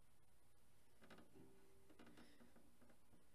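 A cello plays soft notes.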